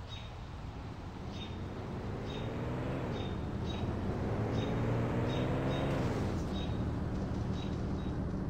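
A van engine revs up and shifts gears as the van drives off.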